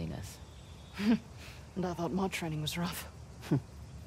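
A woman chuckles and speaks with amusement.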